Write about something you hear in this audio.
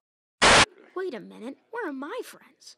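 A boy lets out a high, wavering cry.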